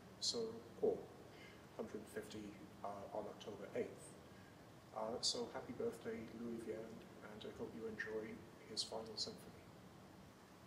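A young man speaks calmly in an echoing hall.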